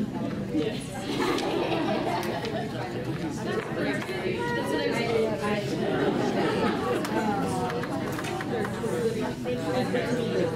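A crowd of people murmurs and chatters in a large room.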